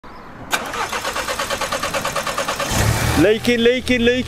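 A car engine starts and idles with a rapid, rhythmic chugging.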